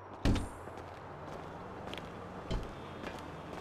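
Footsteps walk.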